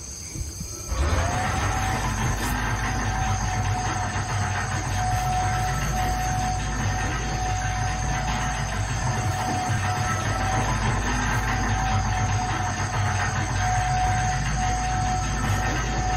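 A cargo lift starts up with a rising whine and hums steadily as it moves.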